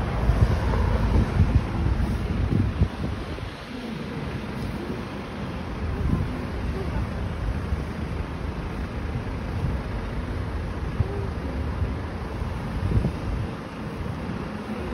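A large truck engine idles nearby with a low rumble.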